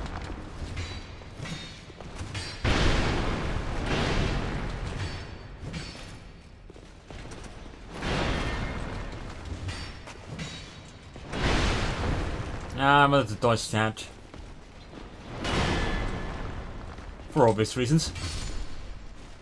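A sword strikes an armoured knight in a video game.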